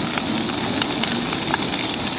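A bonfire crackles and pops loudly outdoors.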